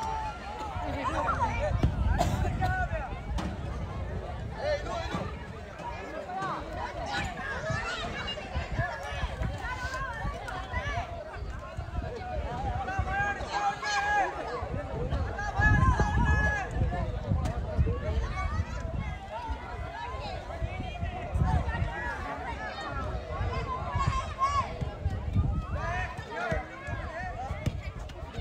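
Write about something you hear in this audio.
A crowd of spectators chatters and cheers in the distance.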